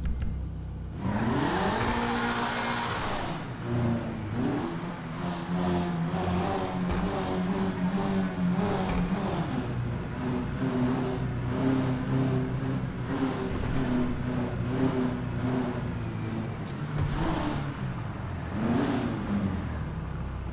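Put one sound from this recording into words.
A car engine roars and revs as it speeds along.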